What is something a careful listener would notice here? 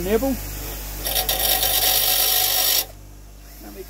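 A power drill whirs at high speed.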